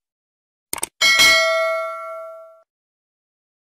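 A bell chimes and rings out.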